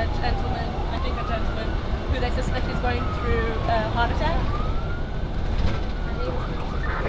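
A siren wails, rising and falling.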